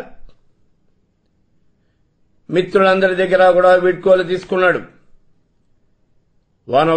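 An elderly man chants in a long, drawn-out voice close to a microphone.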